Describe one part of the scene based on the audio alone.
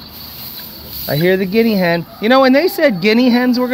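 Poultry squawk and cluck loudly nearby.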